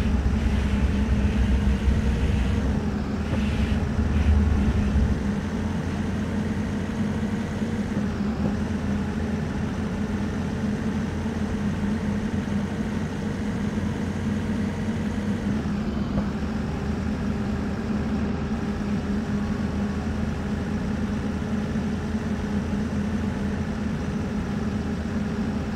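A bus engine hums steadily and rises in pitch as it speeds up, dropping briefly at each gear change.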